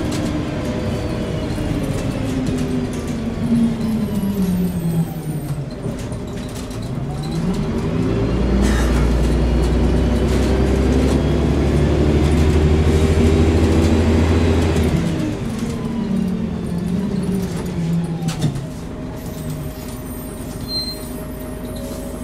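A bus engine hums and whines, rising and falling in pitch as it changes gear.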